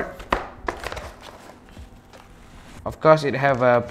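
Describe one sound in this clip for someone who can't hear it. Packaging rustles and crinkles as a box is unpacked.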